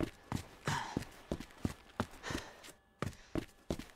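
Footsteps thump up wooden stairs.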